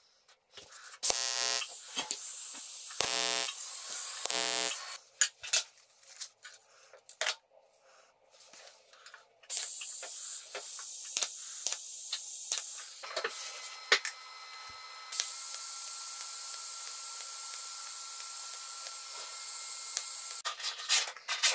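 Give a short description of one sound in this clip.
A welding arc hisses and buzzes steadily.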